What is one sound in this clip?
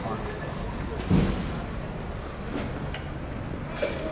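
People chatter faintly in the distance outdoors.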